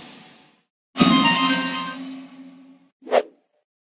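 A short cheerful jingle plays.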